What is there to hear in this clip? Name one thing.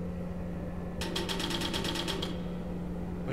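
A metal gurney rattles as it rolls.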